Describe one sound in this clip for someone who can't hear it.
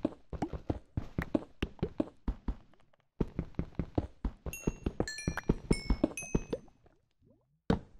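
A pickaxe strikes stone blocks in quick, steady taps.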